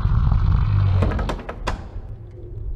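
A metal door latch rattles and clicks.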